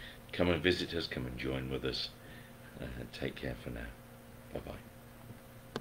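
A middle-aged man speaks calmly and close up, heard through a computer microphone.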